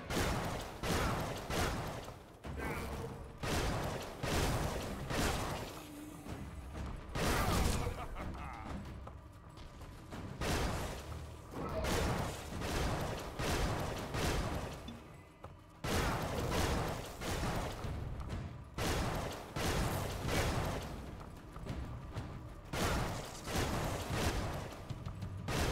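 Game weapons slash and thud repeatedly in combat.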